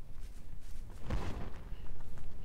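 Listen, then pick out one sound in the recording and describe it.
A heavy blade swings and strikes with a thud.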